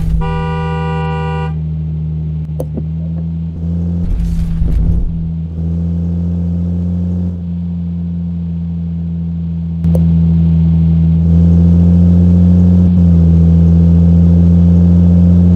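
A van engine hums steadily.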